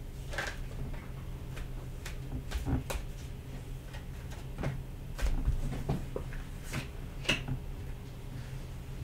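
Cards shuffle and tap together in a woman's hands.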